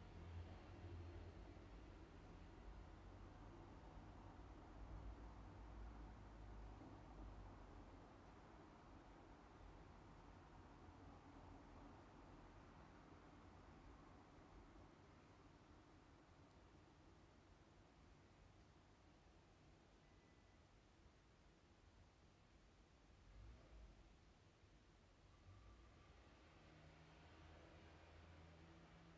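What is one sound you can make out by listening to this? A young woman speaks softly, close to a microphone.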